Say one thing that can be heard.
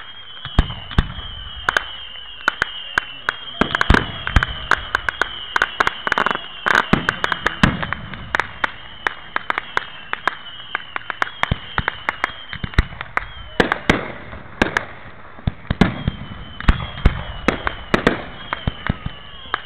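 Rockets whistle as they shoot up.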